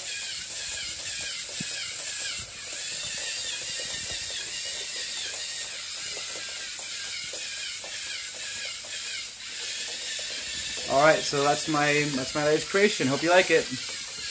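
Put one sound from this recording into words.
A small electric motor whirs steadily as a toy robot walks.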